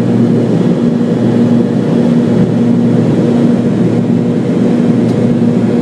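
Airplane wheels rumble over the runway.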